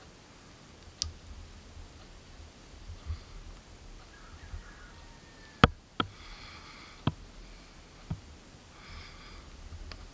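Fingers handle a tiny hook with soft clicks and taps, up close.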